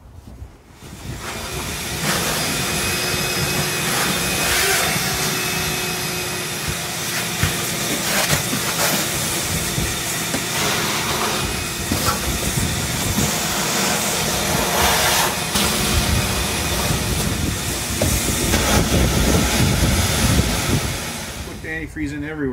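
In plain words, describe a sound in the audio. A vacuum hose sucks with a loud, steady rushing.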